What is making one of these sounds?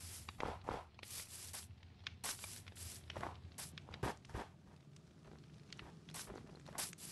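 Game footsteps crunch on snow and gravel.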